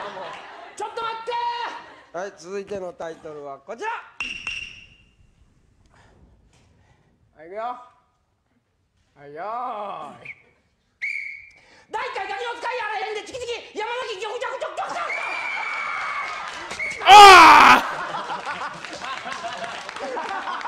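A young man talks and laughs into a microphone.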